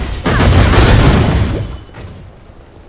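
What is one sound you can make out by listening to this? A magic spell bursts with a loud whooshing blast.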